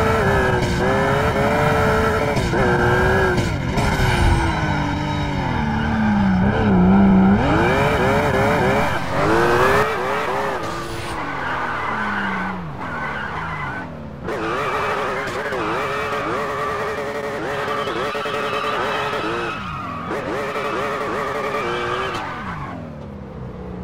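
A car engine roars and revs up and down as the car speeds along.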